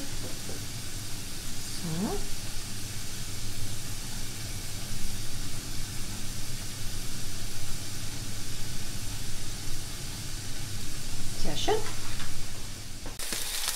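Meat sizzles in a hot frying pan.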